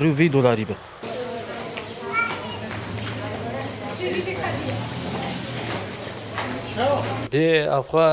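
People chatter faintly in the background.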